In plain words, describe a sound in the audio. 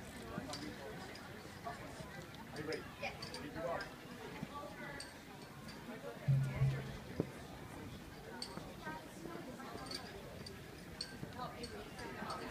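A crowd of men and women chatters in the distance outdoors.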